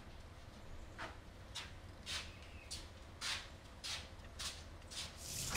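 Footsteps fall on pavement.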